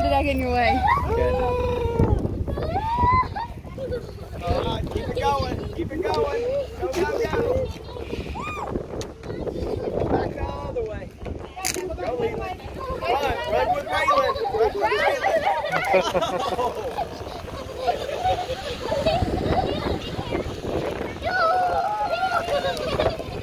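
Young children shout and laugh excitedly close by.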